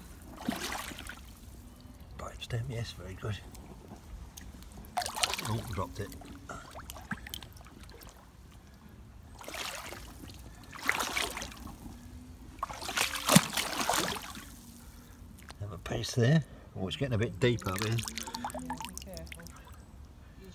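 A hand splashes and swishes through shallow water.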